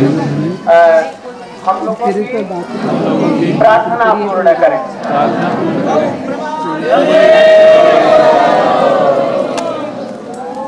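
A large crowd of men and women chants and sings loudly together.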